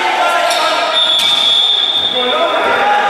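A referee's whistle blows briefly.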